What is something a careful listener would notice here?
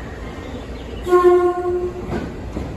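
An arriving train sounds a short horn.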